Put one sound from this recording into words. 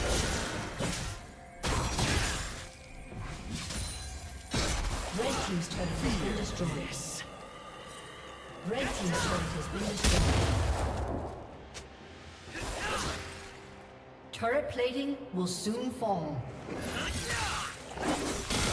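Magic spells burst and whoosh in a fight.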